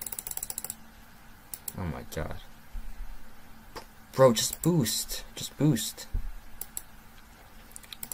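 Cartoonish game sound effects pop and click.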